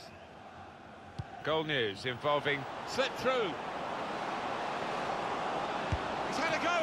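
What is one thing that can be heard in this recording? A large stadium crowd cheers, growing louder.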